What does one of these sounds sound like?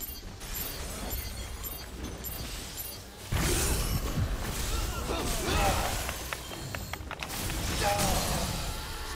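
Electricity crackles and zaps in bursts.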